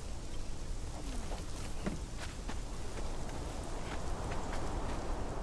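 Footsteps crunch on gravel and thump on wooden boards.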